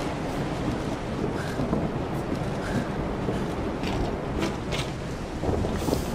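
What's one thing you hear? Footsteps creak on old wooden floorboards.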